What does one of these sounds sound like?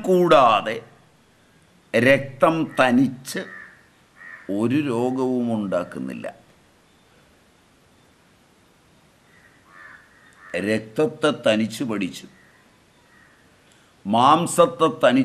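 An elderly man speaks calmly and expressively, close to a microphone, with pauses.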